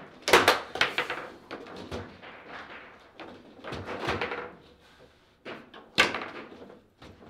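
A foosball bounces sharply off the walls of a table.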